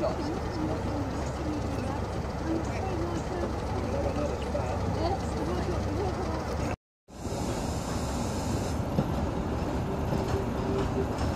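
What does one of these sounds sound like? A diesel locomotive engine idles with a steady low rumble.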